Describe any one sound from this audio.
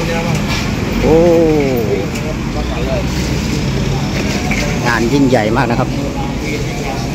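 People nearby talk and call out in a bustling outdoor crowd.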